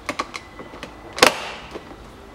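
A hand clicks a car door switch.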